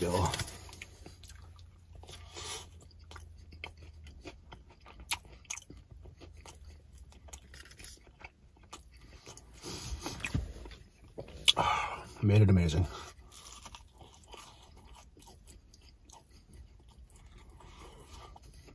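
A young man chews food with his mouth closed.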